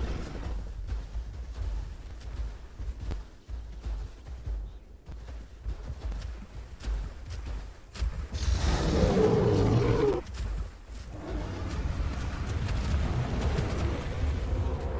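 Heavy footsteps thud steadily on the ground.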